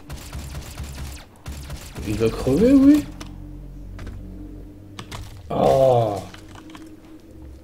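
A heavy gun fires repeatedly.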